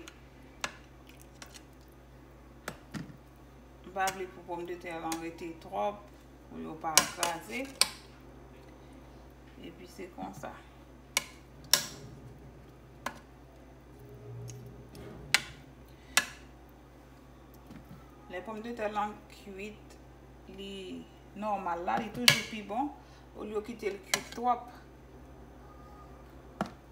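A metal spoon clinks and scrapes against a metal pot.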